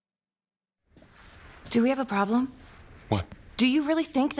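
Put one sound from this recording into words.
A man asks a short question.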